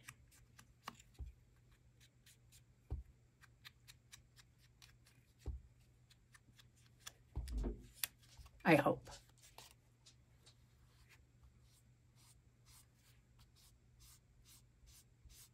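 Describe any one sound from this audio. Small taps and clicks sound as a tool is handled on paper.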